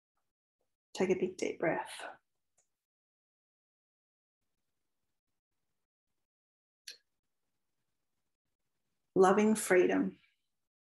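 A woman speaks calmly close by in short bursts.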